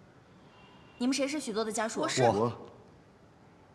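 A woman asks a question, close by.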